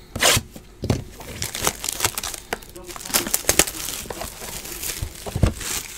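Plastic wrapping crinkles and rustles as hands tear it off a box.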